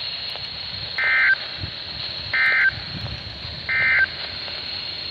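A radio gives three short, even alert beeps.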